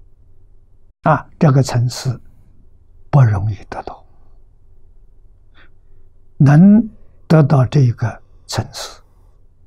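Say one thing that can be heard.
An elderly man speaks slowly and calmly into a close microphone.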